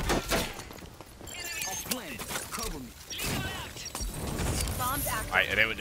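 Electronic beeps sound as a device is armed.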